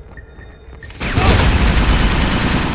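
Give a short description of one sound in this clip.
A loud explosion bursts with a heavy roar.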